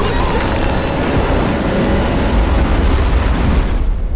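A rockslide rumbles and crashes down.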